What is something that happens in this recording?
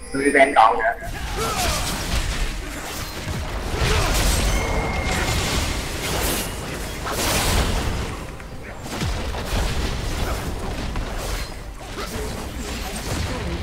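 Game sound effects of spells and blows clash and burst.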